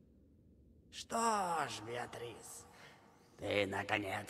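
A young woman speaks quietly and tensely.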